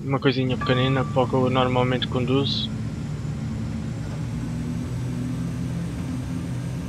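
A train's engine hums steadily as it rolls along the rails.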